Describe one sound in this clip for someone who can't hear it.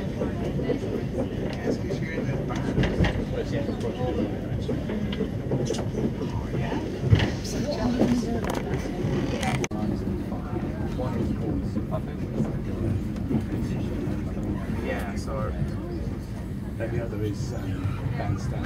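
A train rumbles and clatters steadily along the tracks.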